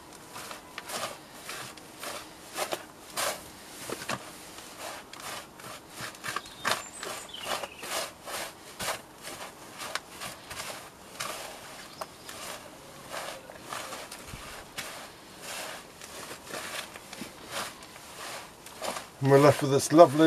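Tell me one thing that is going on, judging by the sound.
Hands rustle and scrape through loose potting soil close by.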